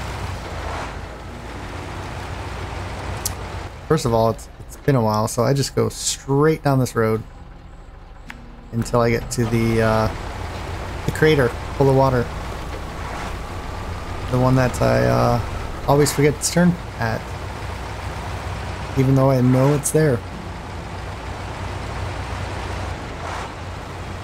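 A truck engine rumbles steadily as the truck drives slowly.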